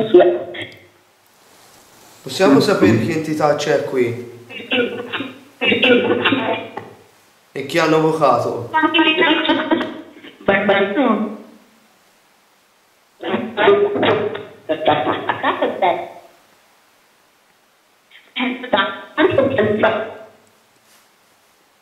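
A young man speaks quietly and hesitantly nearby.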